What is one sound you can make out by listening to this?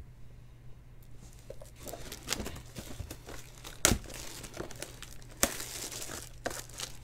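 Plastic wrapping crinkles and tears as a box is unwrapped.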